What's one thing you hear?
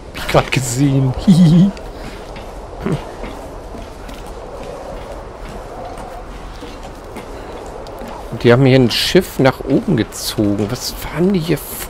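Hands and feet clank on a metal ladder.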